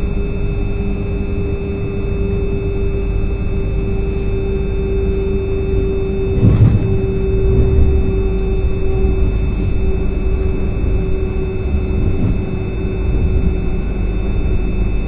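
A train rumbles steadily along the tracks with a low drone and a steady hum.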